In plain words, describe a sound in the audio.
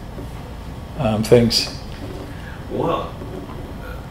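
A middle-aged man speaks calmly and briefly, close by.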